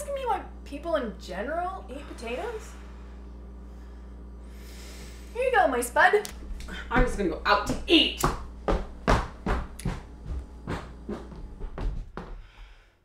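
A young woman speaks with animation, close by.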